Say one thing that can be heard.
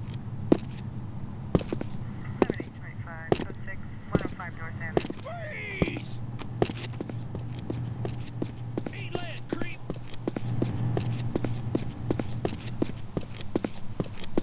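Footsteps tread on hard ground at a quick, steady pace.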